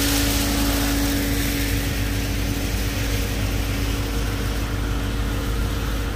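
A diesel engine rumbles steadily close by.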